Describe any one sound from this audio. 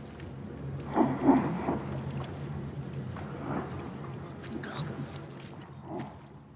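Footsteps tread across wet ground.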